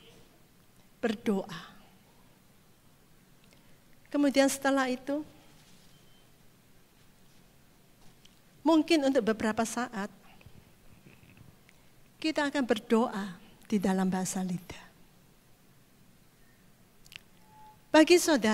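A middle-aged woman speaks expressively into a microphone, heard through loudspeakers, in short bursts with pauses.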